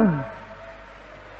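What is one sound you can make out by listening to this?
An elderly man chants a long note that falls and fades.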